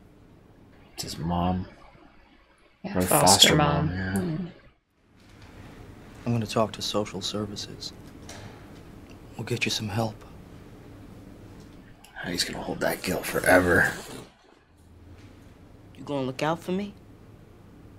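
A man speaks in a low, tense voice.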